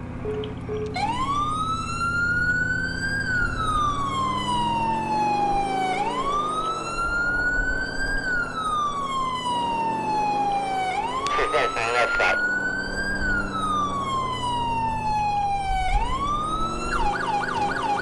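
A siren wails, rising and falling in long slow sweeps.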